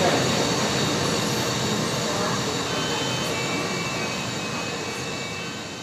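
A small model truck hums as it drives past.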